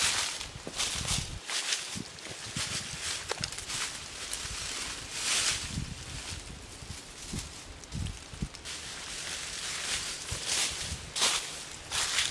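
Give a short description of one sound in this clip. Footsteps rustle and crunch through deep dry leaves.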